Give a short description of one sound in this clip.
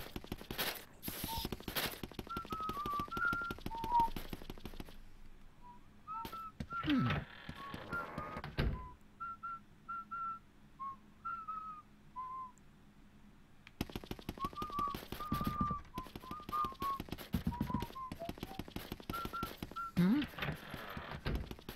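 Quick footsteps patter across a floor.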